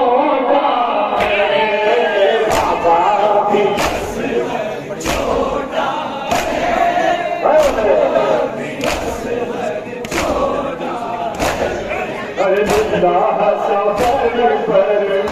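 A man sings a lament through a microphone.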